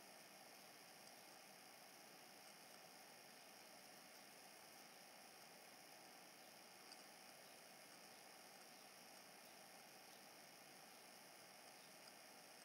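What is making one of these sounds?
Rubber-gloved fingers faintly tap and press small crystals.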